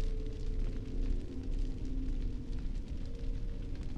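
A woman speaks softly and calmly, close by.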